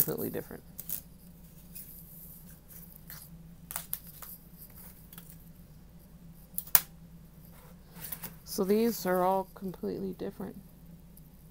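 Thin plastic sheets rattle and clack as they are handled.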